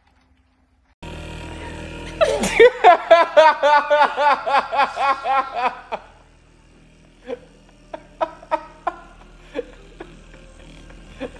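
A massage gun buzzes steadily.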